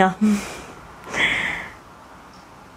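A woman laughs softly.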